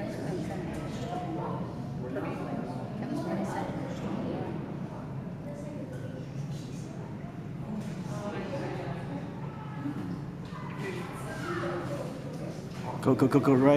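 Spectators murmur and chatter nearby.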